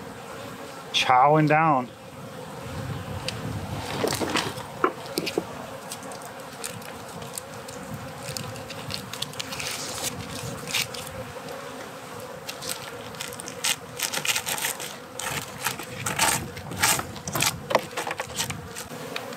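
Bees buzz softly around a hive.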